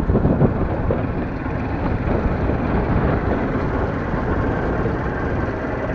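A loader's diesel engine runs nearby.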